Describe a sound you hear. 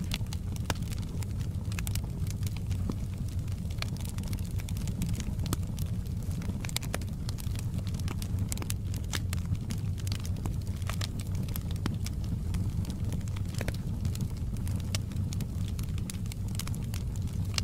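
Flames roar softly with a low rumble.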